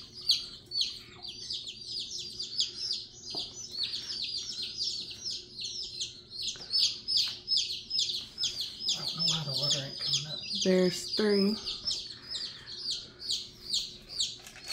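Baby chicks peep rapidly and constantly, close by.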